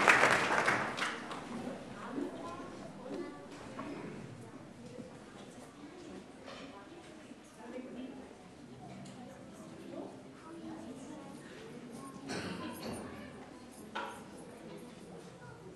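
Children chatter quietly.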